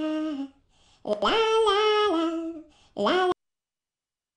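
A young woman sings a short, cheerful tune.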